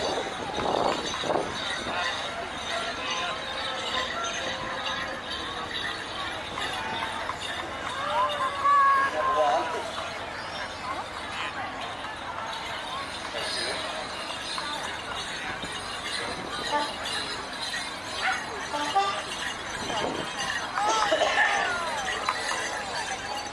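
A crowd murmurs at a distance outdoors.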